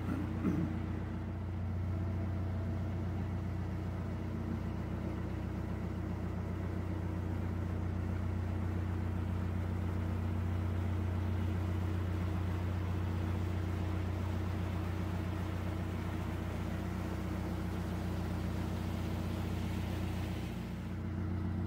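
A boat engine chugs steadily with a low hum.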